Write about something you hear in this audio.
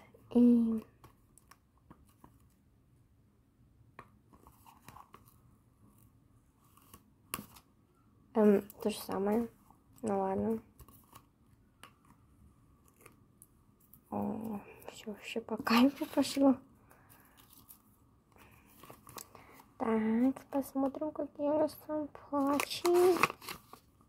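Paper rustles and crinkles as hands handle and fold it.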